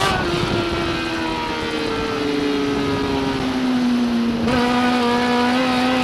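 A race car engine roars loudly from inside the car, its pitch falling as it slows and then rising again.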